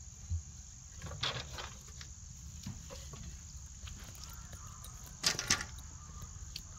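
Bamboo poles clatter as they are carried and dropped onto the ground.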